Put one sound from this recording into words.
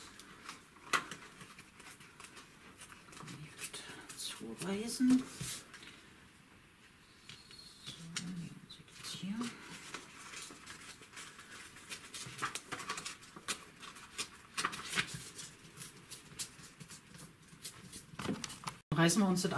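Paper tears in short rips.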